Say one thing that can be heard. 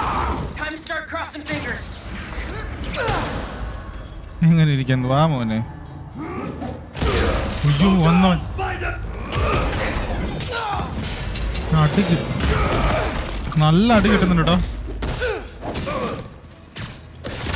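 Punches and blows thud in a fast fight.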